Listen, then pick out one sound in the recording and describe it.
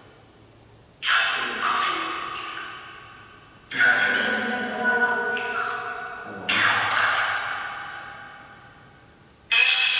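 A phone on the floor sounds loud, sudden tones that ring out and slowly fade in an echoing room.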